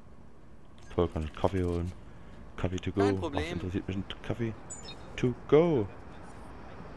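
A second man answers briefly in a friendly voice.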